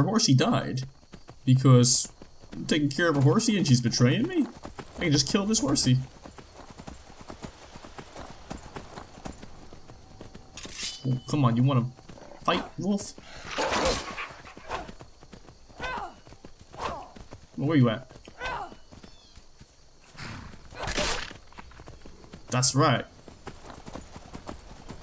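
A horse gallops with quick, thudding hoofbeats.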